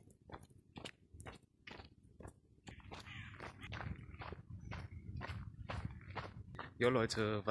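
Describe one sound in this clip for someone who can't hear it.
Footsteps walk steadily on pavement outdoors.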